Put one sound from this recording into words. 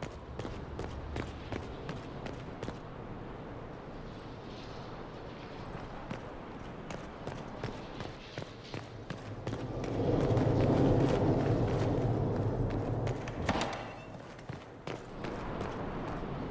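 Footsteps tap quickly on a hard stone floor.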